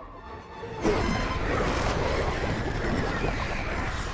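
A man growls and shouts fiercely.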